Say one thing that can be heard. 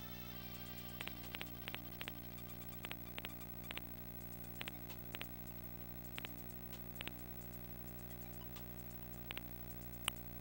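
Soft menu clicks tick quickly as a cursor scrolls through options.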